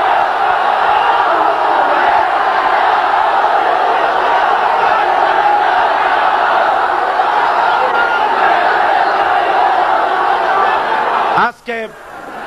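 A large crowd roars and cheers outdoors.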